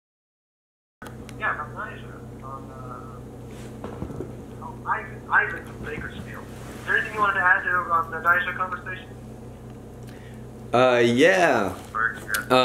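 A man talks into a phone with animation.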